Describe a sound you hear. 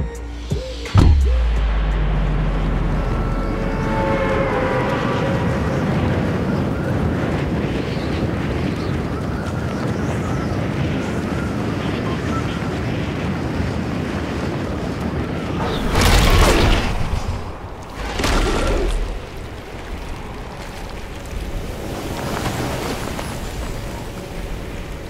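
Wind rushes steadily past during a glide, with loud gusts swelling now and then.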